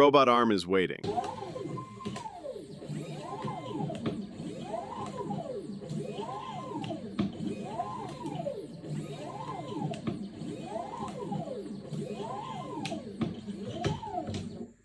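Robot arm motors whine, rising and falling in pitch over and over.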